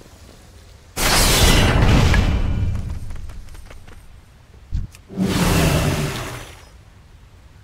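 Loud magical blasts whoosh and roar in short bursts during a fight.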